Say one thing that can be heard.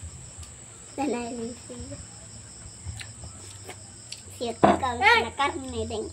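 A young child talks loudly and excitedly close by.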